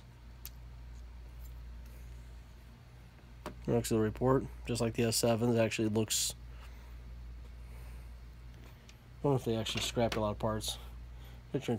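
Small plastic parts click softly as a phone is handled.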